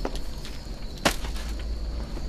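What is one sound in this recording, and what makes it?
Something is set down in a wicker basket with a soft knock.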